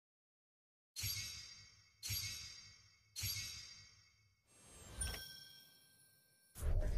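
Whooshing game sound effects swell and fade several times.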